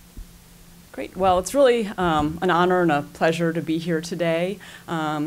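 A woman speaks calmly through a microphone into a room.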